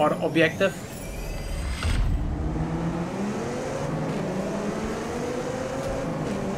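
A car engine revs up and accelerates steadily.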